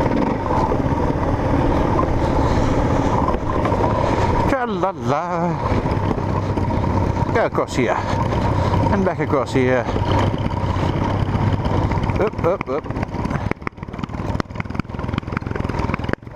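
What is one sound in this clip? A motorcycle engine revs and rumbles up close as it rides over rough ground.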